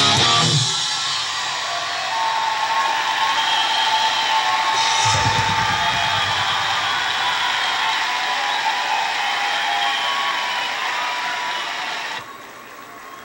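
Loud rock music with guitars and drums plays through a television speaker.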